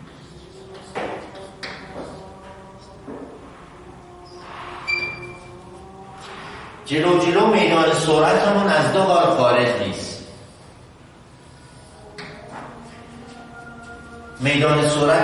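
A man speaks loudly and clearly.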